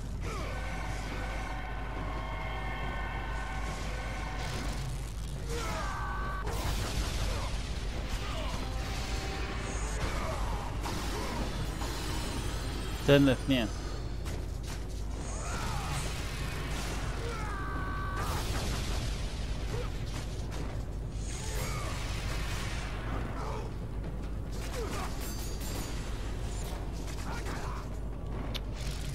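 Metal blades strike enemies with sharp, meaty hits.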